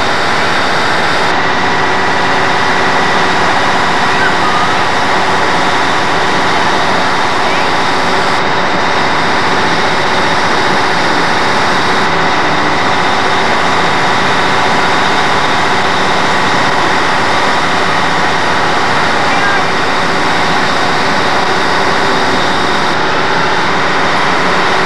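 A crowd murmurs steadily all around.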